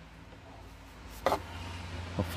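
A screwdriver taps against hard plastic.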